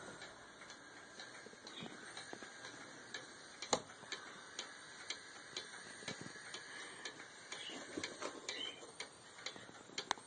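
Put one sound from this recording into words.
A wall clock ticks steadily and loudly.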